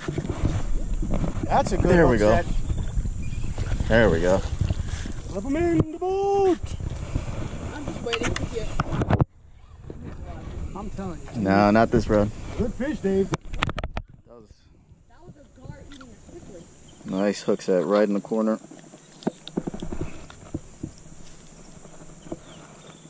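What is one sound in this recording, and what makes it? A man talks with animation close by, outdoors in wind.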